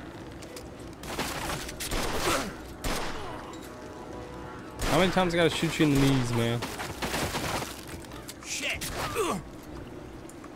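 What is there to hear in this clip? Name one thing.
A young man talks with animation, heard close through a microphone.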